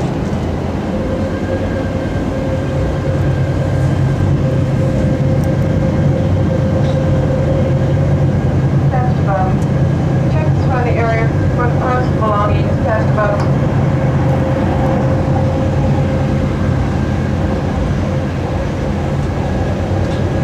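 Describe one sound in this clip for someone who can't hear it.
A train's motor whines with a steady tone.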